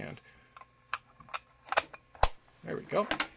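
A plastic battery cover clicks and snaps shut.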